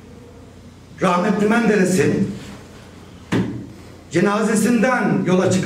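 An older man speaks firmly into a microphone, in short bursts with pauses.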